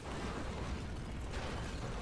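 Fireballs whoosh and burst.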